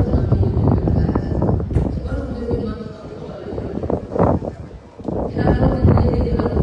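A crowd murmurs faintly across a large open stadium.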